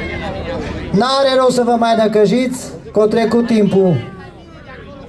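Men shout loudly, urging on horses.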